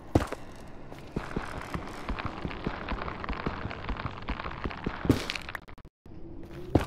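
Blocks crunch and crumble as they are mined.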